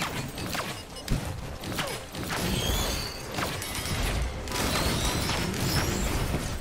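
Swords swish and strike in a fast fight.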